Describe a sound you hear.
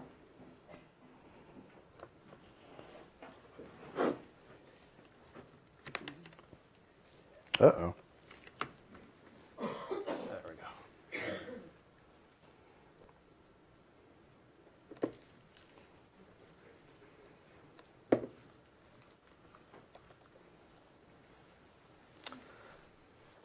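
Laptop keys click and tap now and then.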